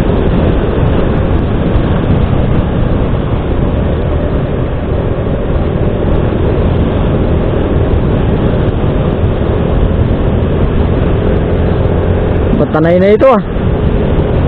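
Wind rumbles loudly against the rider.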